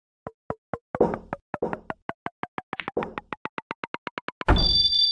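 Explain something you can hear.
Rapid ticks speed up and climb in pitch.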